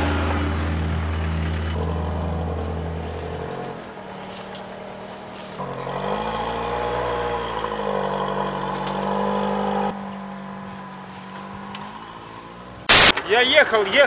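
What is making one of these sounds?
An engine drones and revs, rising and falling in pitch.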